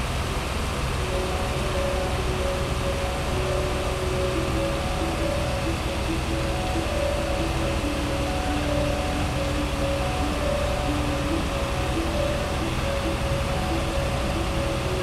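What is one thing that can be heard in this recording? A fire engine's motor idles with a steady low rumble.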